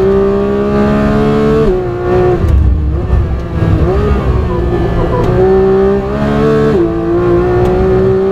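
A racing car engine roars loudly, its pitch dropping and climbing as the gears change.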